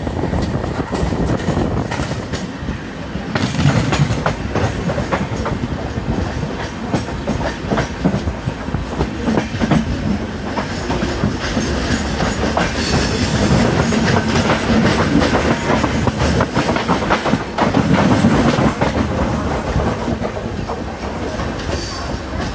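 Train wheels rumble and clatter steadily over the rails.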